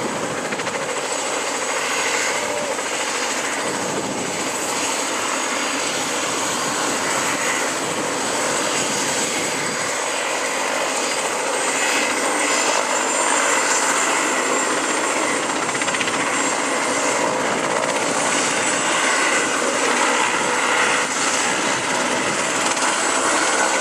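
A helicopter's rotor thumps and its engine roars steadily close by.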